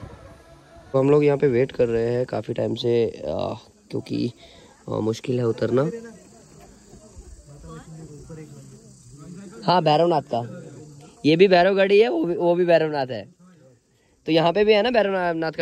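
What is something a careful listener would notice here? A young man talks nearby.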